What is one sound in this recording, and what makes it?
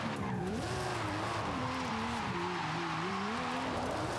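Tyres screech as a game car skids through a turn.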